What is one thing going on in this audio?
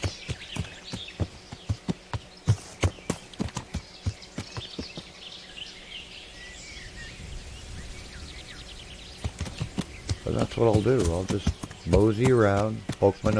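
A horse's hooves thud steadily on a forest floor.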